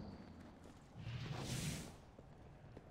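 A magical spell whooshes with a bright shimmer.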